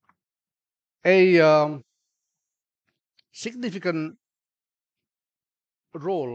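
A middle-aged man speaks slowly into a microphone, in short phrases with pauses.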